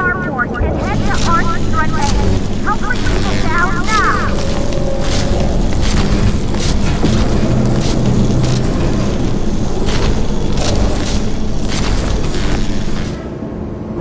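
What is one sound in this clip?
A laser cutter buzzes and crackles as it cuts through metal.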